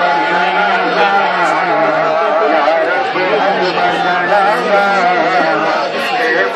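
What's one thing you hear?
A large crowd of men talks and calls out close by, outdoors.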